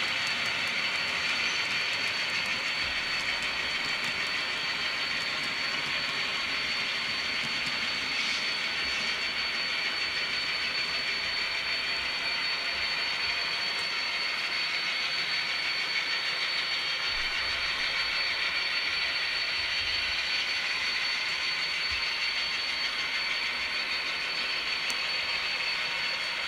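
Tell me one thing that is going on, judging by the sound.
A model train rolls along its track with a steady whirring hum.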